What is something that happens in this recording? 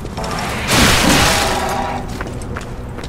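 A heavy weapon strikes an enemy with a loud whooshing crash.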